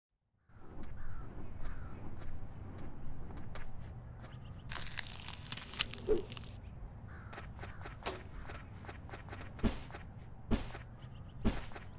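Soft paw steps patter quickly.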